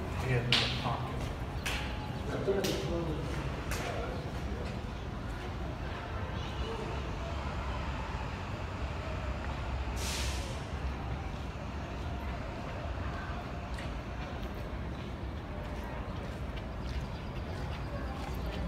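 Footsteps echo in a tunnel as a person walks closer.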